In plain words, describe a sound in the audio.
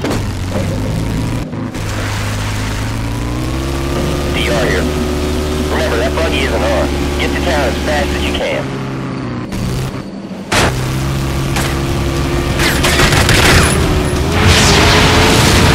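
Tyres crunch and skid on loose dirt.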